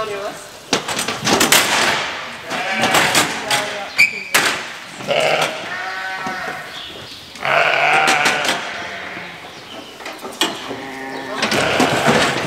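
A metal gate rattles and clanks.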